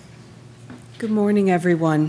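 A woman speaks calmly through a microphone in a large room.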